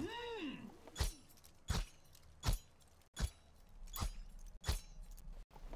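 Laser weapons fire in sharp bursts.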